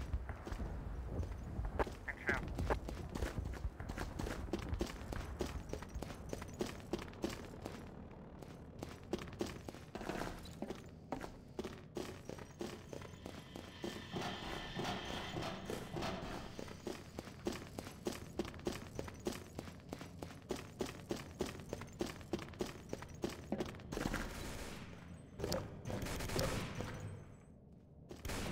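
Quick, regular footsteps tap on a hard floor.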